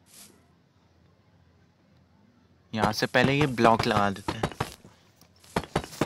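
A stone block is set down with a dull knock.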